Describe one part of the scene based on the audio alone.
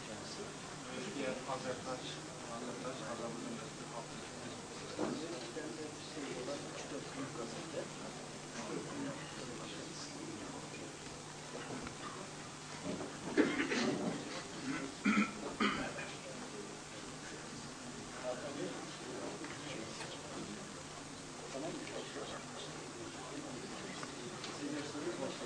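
A crowd of men murmurs quietly in a large echoing hall.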